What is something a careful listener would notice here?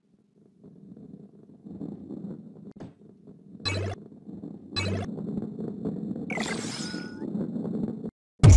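A heavy ball rolls with a low, steady rumble.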